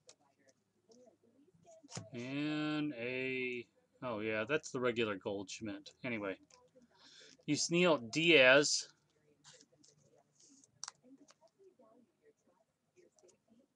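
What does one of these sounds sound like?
Trading cards rustle and click as they are shuffled in hands.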